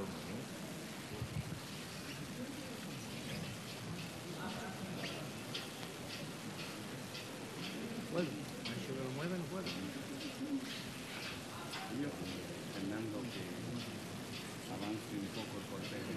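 A crowd murmurs in the open air.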